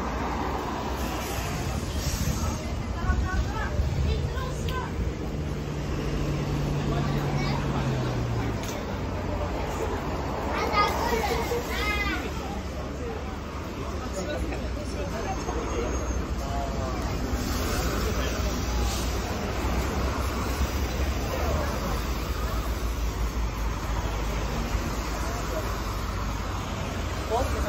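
Traffic rumbles steadily past on a city street.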